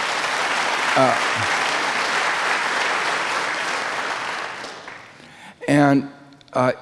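An elderly man speaks calmly into a microphone in a large echoing hall.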